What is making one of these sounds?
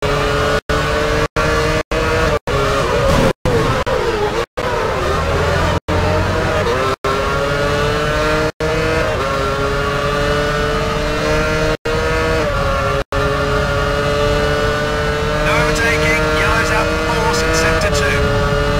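A racing car engine whines loudly, rising and falling as the gears change.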